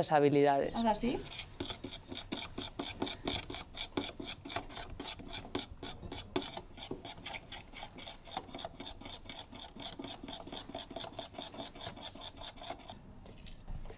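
A spoon clinks steadily against a bowl while stirring batter.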